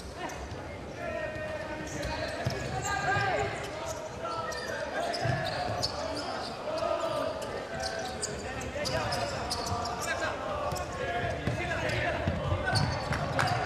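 A ball thumps off a player's foot.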